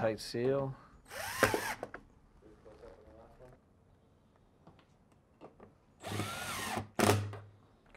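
A cordless drill whirs in short bursts as it drives screws.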